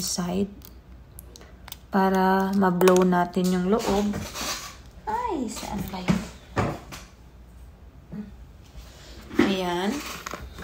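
A young woman speaks animatedly and close by, with drawn-out, sing-song words.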